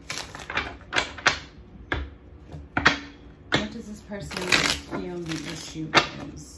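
Playing cards riffle and slap as they are shuffled by hand.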